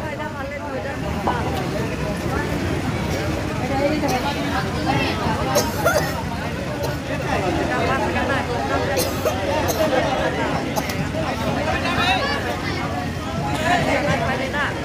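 A crowd of men chatter nearby.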